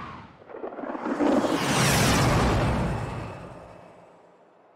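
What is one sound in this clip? A spaceship engine roars past with a loud whoosh.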